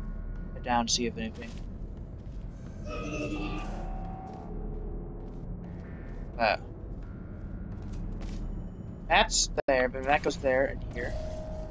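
A futuristic energy gun fires with short warbling zaps.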